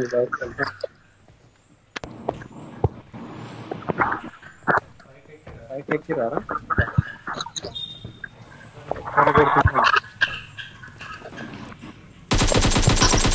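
Footsteps thud on a metal roof.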